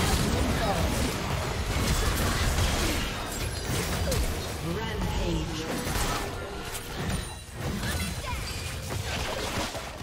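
Spell effects whoosh and crackle in a fast fight.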